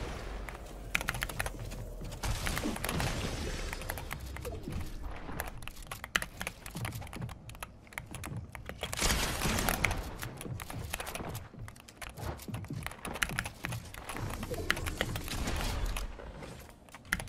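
Wooden panels snap into place with rapid clacks and knocks.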